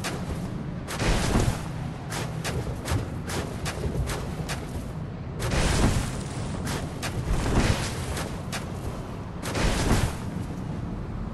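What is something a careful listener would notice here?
Heavy blows land with loud thuds.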